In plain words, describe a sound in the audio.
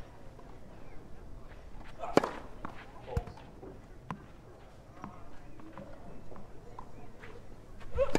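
A tennis ball bounces on a clay court.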